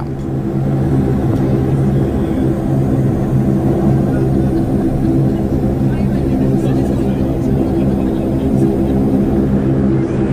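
Water from a spray splashes and drums against an aircraft window.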